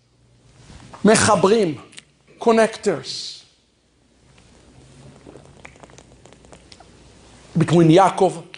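A man speaks with animation through a microphone in an echoing room.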